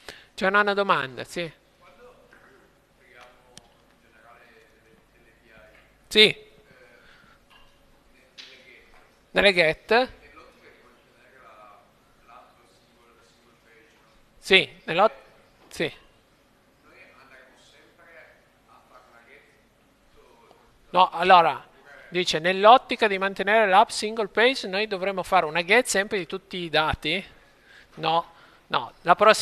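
A man talks calmly into a close microphone, with pauses.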